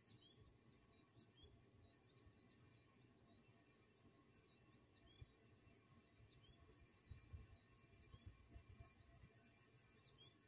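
An outdoor air conditioning unit hums steadily.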